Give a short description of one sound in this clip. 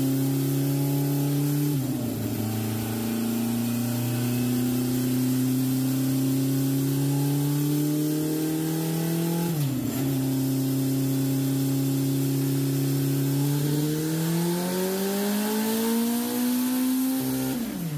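A motorcycle engine roars loudly, rising steadily in pitch and dropping briefly at each gear change.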